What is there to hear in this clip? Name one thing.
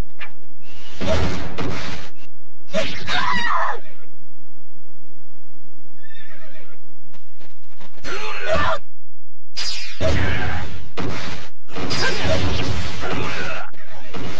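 Swords clash and slash in loud bursts of combat.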